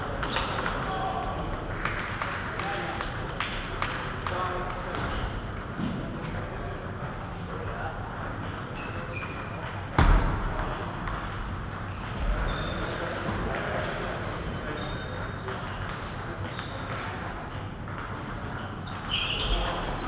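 Table tennis balls click against paddles and tables in an echoing hall.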